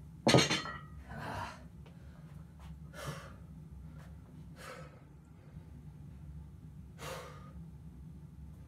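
A young man breathes heavily, close by.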